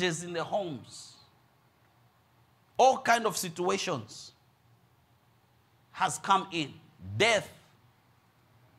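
A middle-aged man speaks with animation in short bursts through a microphone.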